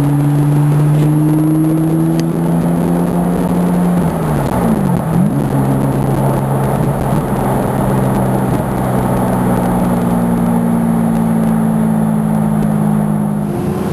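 A car engine hums steadily from inside the cabin, dipping and rising as the gears change.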